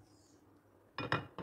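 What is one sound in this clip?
A stove knob clicks off.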